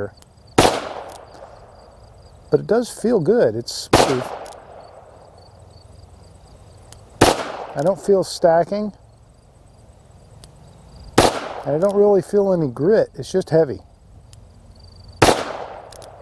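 A revolver fires loud, sharp shots outdoors, each echoing briefly.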